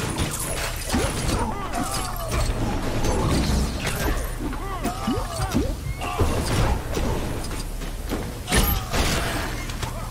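Small studs clink and jingle as they are picked up.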